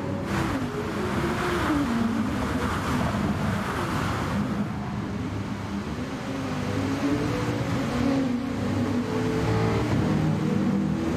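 Rain hisses and tyres spray water on a wet track.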